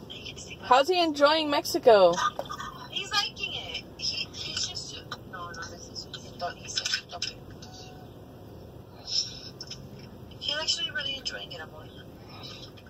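A woman talks animatedly through a phone's speaker on a video call.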